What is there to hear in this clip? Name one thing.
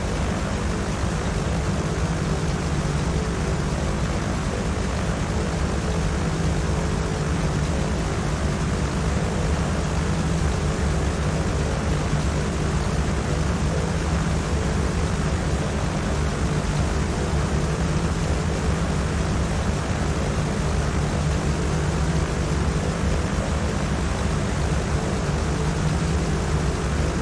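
Twin propeller engines drone steadily as a small plane flies.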